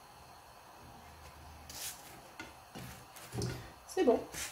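A spatula presses and scrapes on a hot pan.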